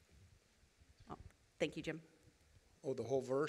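A woman speaks into a microphone in a large room, heard through loudspeakers.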